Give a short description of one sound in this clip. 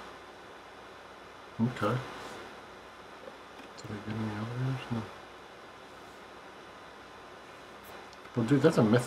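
Stiff cards slide and flick against each other.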